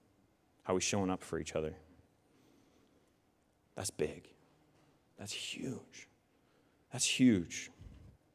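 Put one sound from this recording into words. A young man speaks through a microphone in short bursts with pauses.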